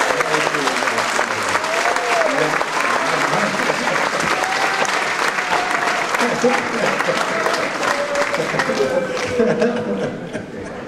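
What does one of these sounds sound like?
A man plays a harmonica into a microphone.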